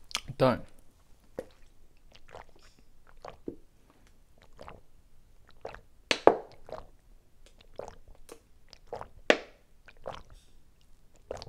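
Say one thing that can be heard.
Water sloshes in a bottle.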